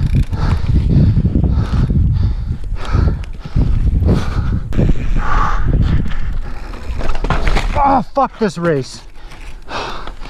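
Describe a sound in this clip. A bike frame rattles and clanks over bumps.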